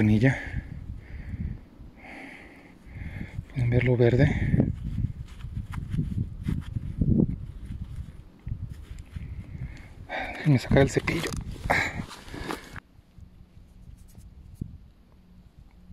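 Gloved fingers rub and crumble dry soil off a small lump.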